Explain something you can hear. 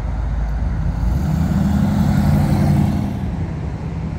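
An old car drives past at low speed.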